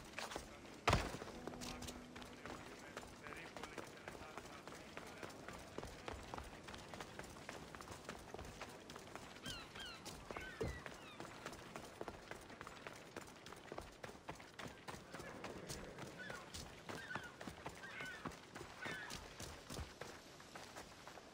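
Footsteps patter quickly on stone as a person runs.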